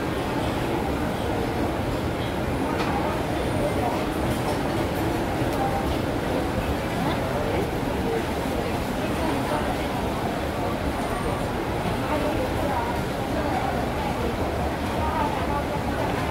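Many voices chatter in a busy crowd around the listener.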